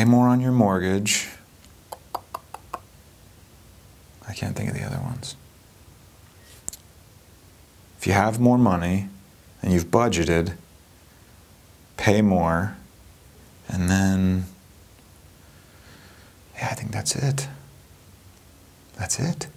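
A young man talks with animation into a nearby microphone, in short bursts with pauses.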